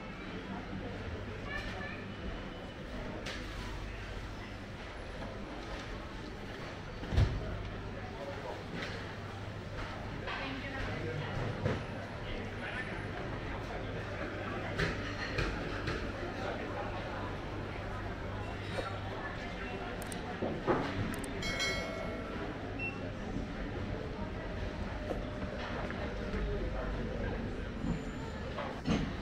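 A busy indoor market hums with the murmur of distant voices in a large echoing hall.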